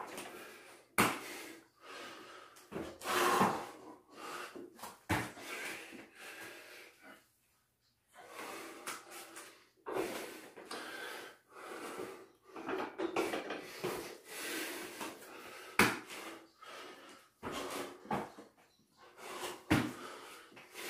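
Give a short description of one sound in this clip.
Bare feet thump on a floor mat.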